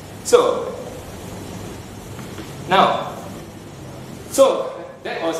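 A man speaks in short bursts in an echoing room.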